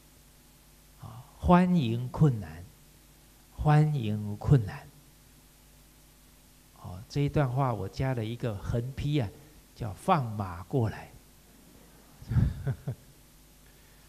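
A middle-aged man speaks calmly and warmly into a microphone, in short phrases with pauses.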